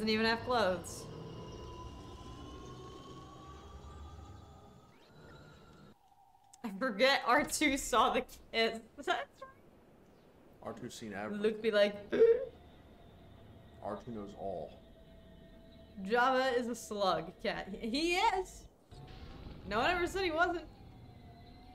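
A young woman talks and laughs with animation close to a microphone.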